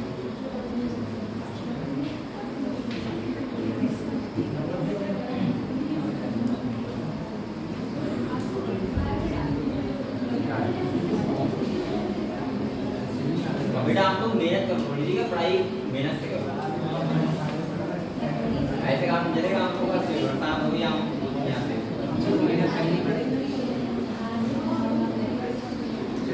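A young man speaks steadily.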